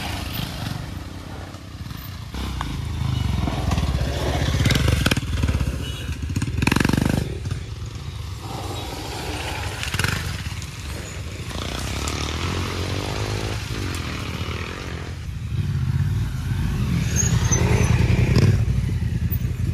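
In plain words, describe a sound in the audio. Motorcycle tyres crunch over dry leaves and dirt.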